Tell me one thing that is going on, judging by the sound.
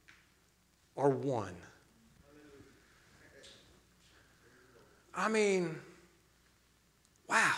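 A young man speaks with animation into a microphone, in short loud bursts.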